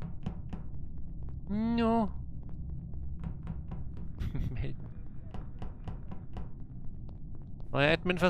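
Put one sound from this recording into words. Quick light footsteps patter steadily on a metal floor.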